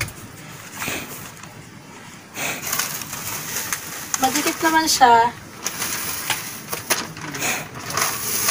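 Paper crinkles and tears as it is peeled.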